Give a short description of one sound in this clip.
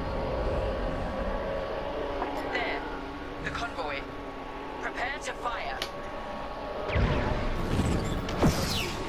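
A starfighter engine hums steadily, with a low roar that swells toward the end.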